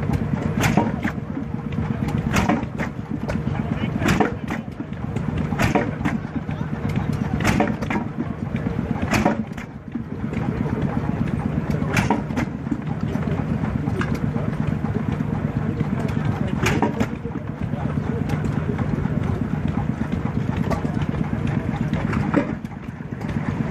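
A small engine runs with a steady low chugging.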